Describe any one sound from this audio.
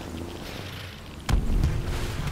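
A snowmobile engine hums steadily.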